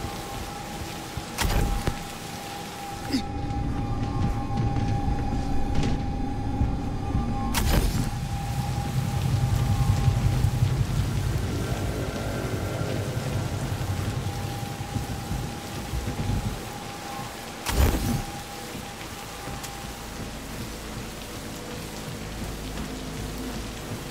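Footsteps thud on hard floors.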